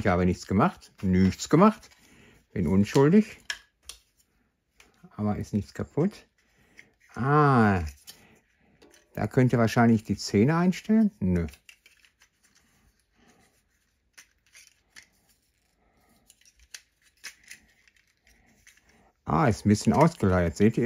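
A small plastic toy clicks and rattles as it is handled.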